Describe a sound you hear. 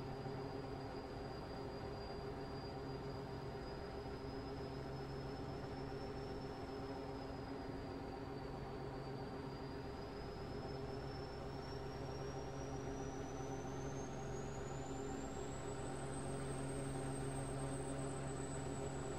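A truck engine hums steadily as it drives along a highway.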